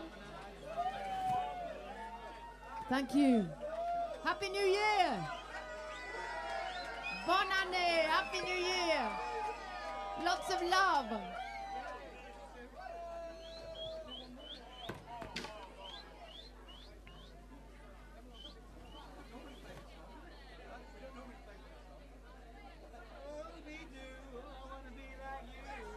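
A live band plays.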